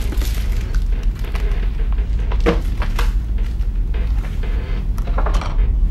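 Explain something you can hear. A wooden chair scrapes briefly across a hard floor.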